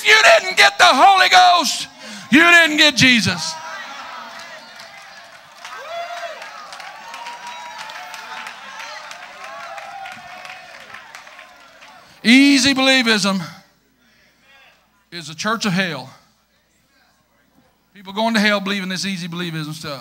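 A middle-aged man preaches loudly and with passion through a microphone, in an echoing hall.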